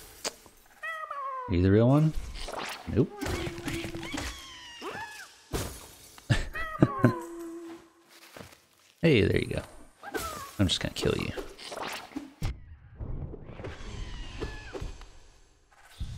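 Playful game sound effects chirp, warble and clatter.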